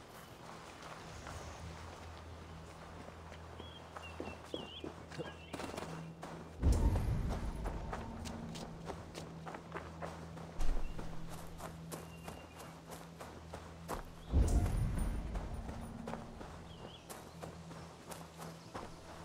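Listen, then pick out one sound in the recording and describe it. Footsteps run over grass and leaves.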